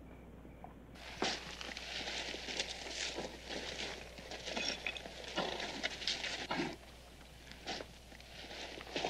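Horses' hooves clatter on rocky ground.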